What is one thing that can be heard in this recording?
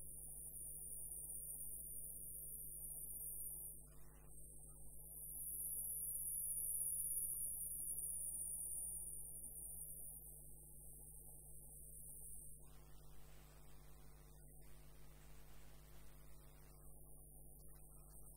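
A wood lathe motor hums as it spins.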